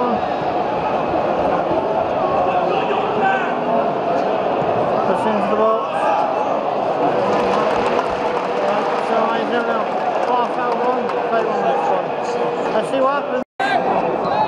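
A young man talks close to the microphone.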